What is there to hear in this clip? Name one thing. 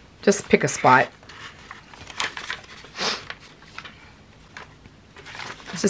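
Paper pages rustle and flap as they are turned.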